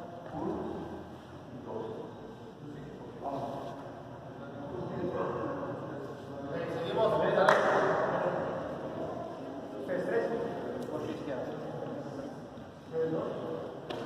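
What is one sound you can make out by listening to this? A crowd of young people chatter throughout a large echoing hall.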